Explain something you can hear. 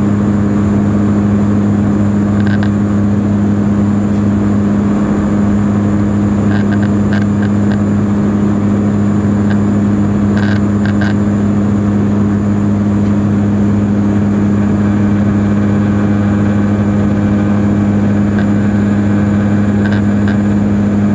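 Rushing air roars past the aircraft.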